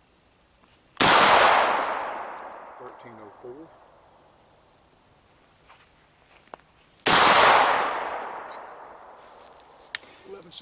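A gun fires loudly twice outdoors, each shot echoing away through the woods.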